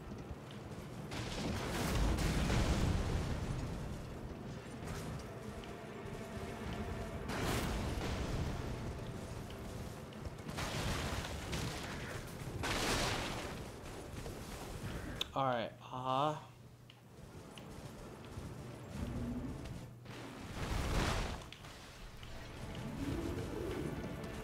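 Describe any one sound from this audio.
Horse hooves thud on the ground at a gallop.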